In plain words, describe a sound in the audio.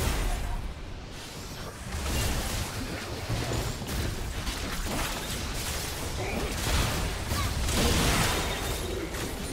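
Magic blasts and explosions crackle in a busy fantasy battle.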